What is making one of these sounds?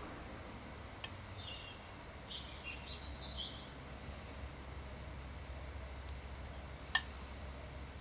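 Small metal balls click against a tin lid.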